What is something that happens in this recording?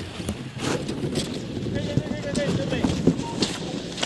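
Skis swish and scrape over snow as a skier glides past.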